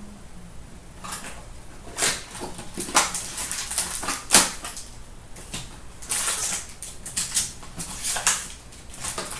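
Cardboard packaging rustles and tears as hands open it.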